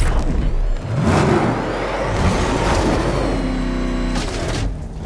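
A powerful car engine rumbles and roars.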